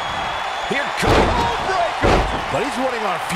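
A body slams heavily onto a wrestling ring mat with a thud.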